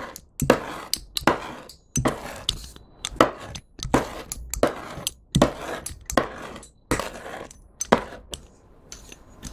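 A knife blade presses and squelches into soft slime again and again.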